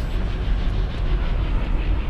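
Water rushes down a waterfall.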